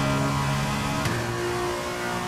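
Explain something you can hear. A racing car engine briefly drops in pitch as the gear shifts up.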